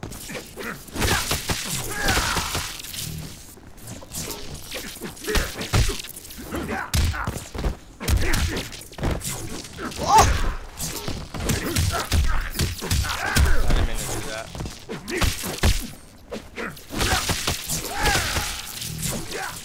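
Electric blasts crackle and zap.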